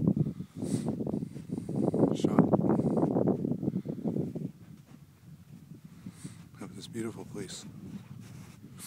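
Gusty wind rumbles against the microphone outdoors.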